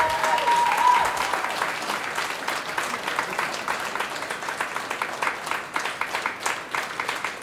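A jazz band plays live in a large echoing hall.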